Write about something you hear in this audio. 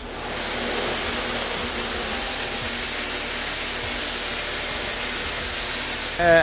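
Grain pours down steadily onto a metal grate with a loud rushing hiss.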